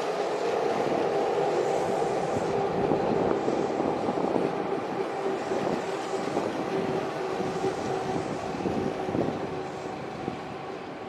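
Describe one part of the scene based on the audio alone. Train wheels squeal on the rails with a steady whine.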